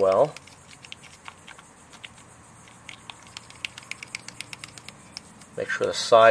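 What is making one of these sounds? Plastic pieces click and tap softly as they are handled.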